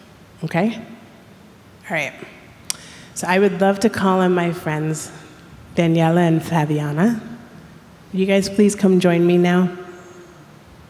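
A woman sings slow, drawn-out notes through a microphone.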